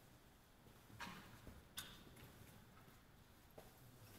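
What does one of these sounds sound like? An elderly man speaks softly in a quiet, echoing hall.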